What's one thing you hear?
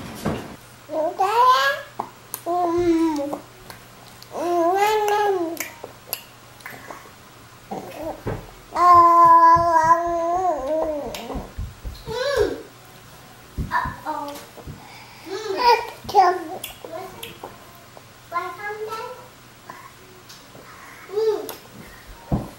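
A baby babbles and squeals loudly close by.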